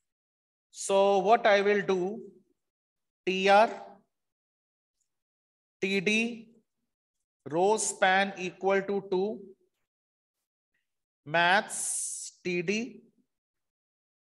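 A young man speaks calmly into a microphone, explaining in short phrases.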